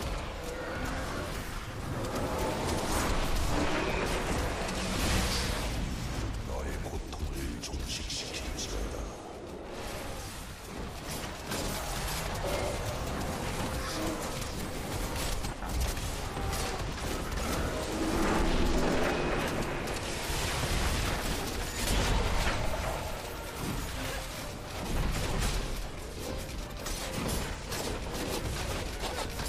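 Spells and weapons clash and explode again and again in a game fight.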